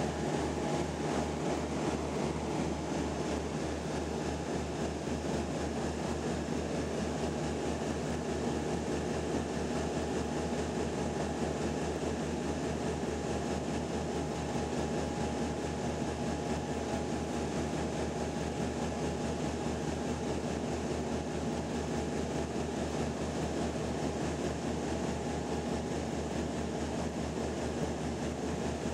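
A propeller engine drones loudly and steadily, heard from inside an aircraft cabin.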